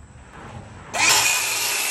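A circular saw whines as it cuts through a wooden board.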